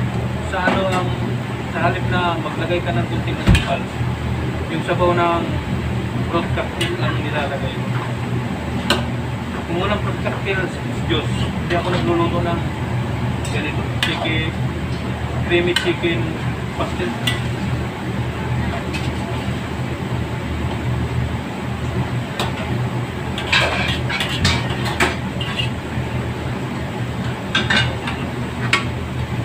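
Gas burners roar steadily.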